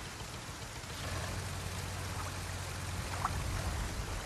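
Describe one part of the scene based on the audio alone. A small outboard motor hums low.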